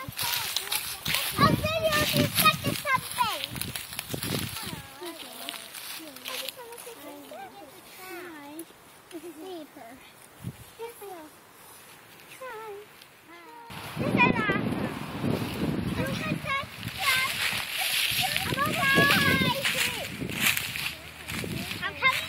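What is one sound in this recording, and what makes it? Pine branches rustle and swish as a child pushes through them.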